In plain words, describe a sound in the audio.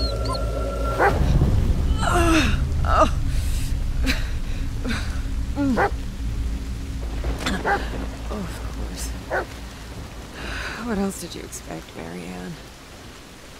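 A young woman speaks quietly and tensely nearby.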